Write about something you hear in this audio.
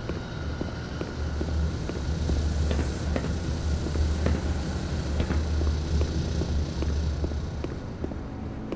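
Electrical machinery hums low and steady.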